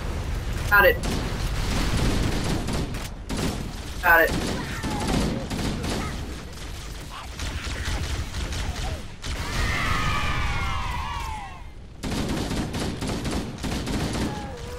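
Gunfire from a video game rattles in quick bursts.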